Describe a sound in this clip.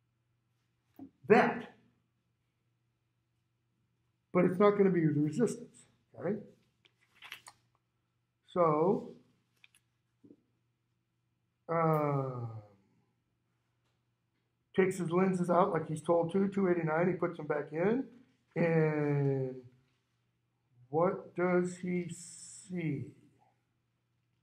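A middle-aged man speaks in short bursts with pauses, close by and a little muffled.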